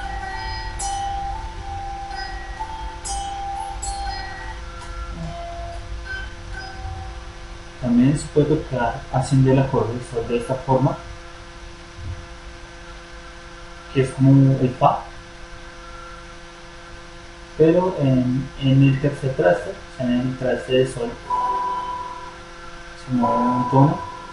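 An electric guitar plays a slow melody of single notes.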